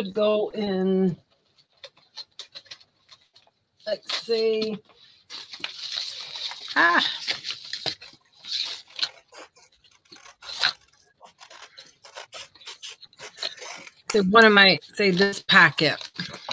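Paper rustles and crinkles as hands handle it.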